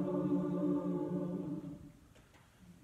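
A choir sings a held chord in a reverberant room, then stops.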